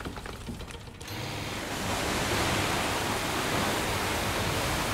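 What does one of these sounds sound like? A boat motor roars steadily.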